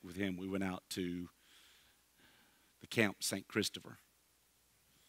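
A middle-aged man speaks with animation through a headset microphone.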